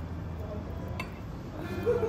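Chopsticks click lightly together.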